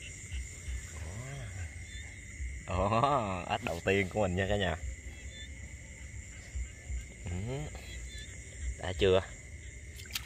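A frog croaks loudly and repeatedly close by.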